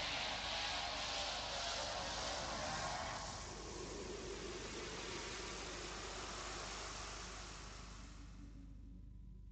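A loud rushing whoosh roars and slowly fades away.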